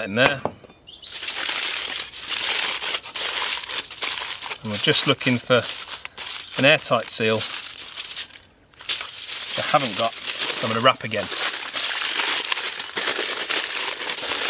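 Aluminium foil crinkles and rustles as it is folded.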